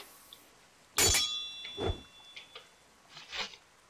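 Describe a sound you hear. A spell bursts with a sharp magical whoosh.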